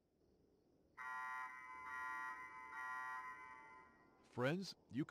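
A warning alarm beeps in quick, even pulses.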